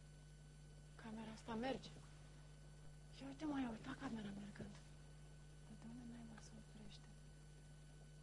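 A young woman speaks in a low, tense voice.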